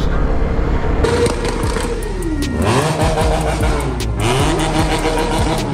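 Several motorcycles rumble past slowly, engines revving.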